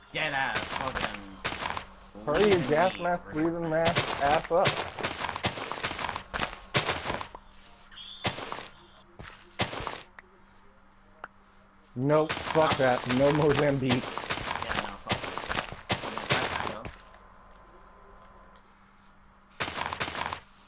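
Shovel digging crunches through dirt in short bursts.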